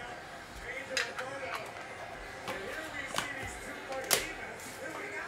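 Plastic packaging crinkles and clicks in hands.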